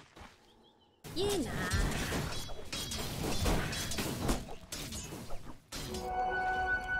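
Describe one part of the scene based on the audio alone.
Weapons clash and magic spells crackle in a busy fight.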